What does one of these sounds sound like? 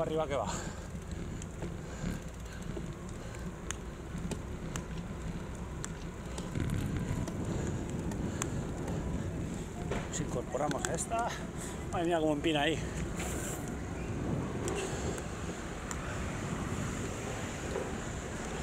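Wind rushes and buffets steadily past a moving bicycle.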